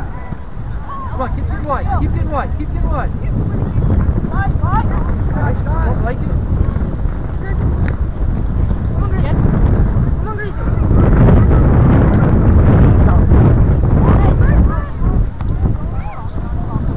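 Young players shout to each other across an open field, some distance away.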